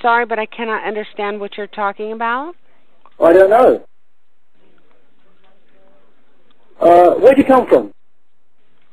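An elderly man speaks in short bursts close by.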